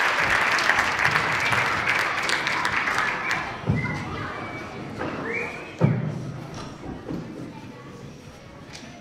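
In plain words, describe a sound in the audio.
An audience applauds and cheers, then the clapping fades away.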